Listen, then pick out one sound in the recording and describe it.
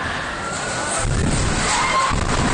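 A road surface collapses with a deep rumble and crash.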